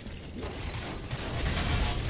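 Bullets strike metal with sharp ringing clangs.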